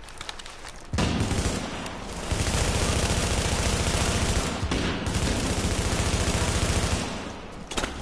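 Rapid gunfire rattles loudly and close by.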